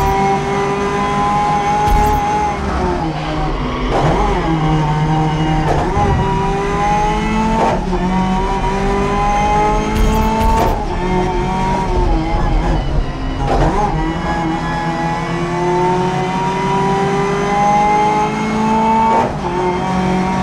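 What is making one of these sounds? A racing car engine roars, its pitch climbing through each gear and dropping sharply at every gear change.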